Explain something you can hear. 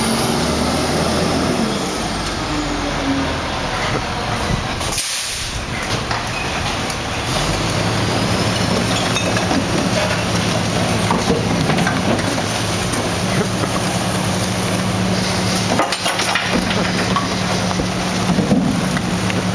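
A garbage truck engine idles with a low steady rumble.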